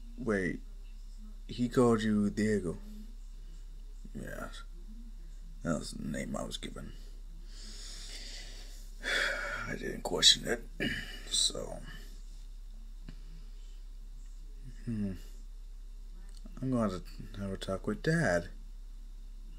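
A young man speaks in short, calm phrases with pauses between them.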